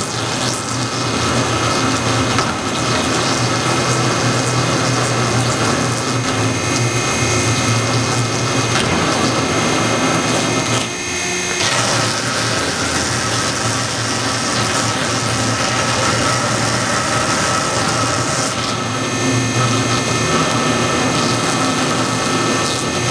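A blade scrapes and cuts through rubber.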